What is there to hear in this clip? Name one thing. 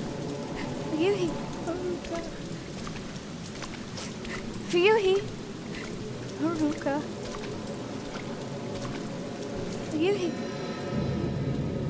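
A young woman calls out softly and hesitantly.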